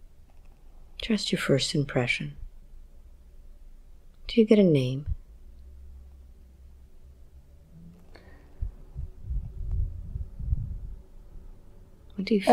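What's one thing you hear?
A woman speaks in short, drowsy phrases close to a microphone.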